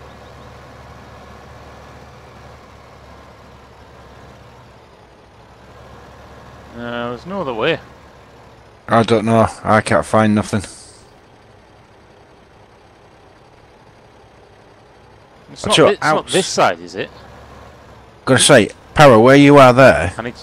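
A tractor engine idles with a low, steady hum.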